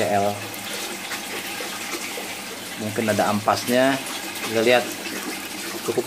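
Liquid pours from a cup and splashes into a basin of water.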